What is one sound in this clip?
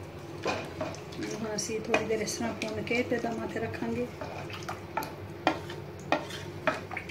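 A wooden spoon stirs thick liquid in a metal pot, scraping and knocking against its sides.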